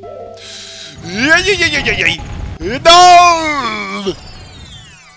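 A wavering, sliding game melody plays loudly.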